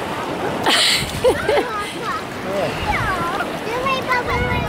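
A young woman laughs excitedly nearby.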